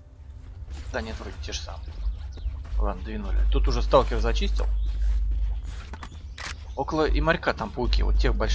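Footsteps crunch on loose stones.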